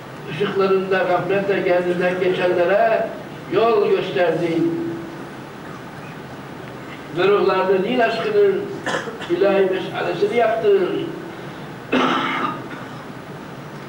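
An elderly man reads aloud in a slow, calm voice, close by.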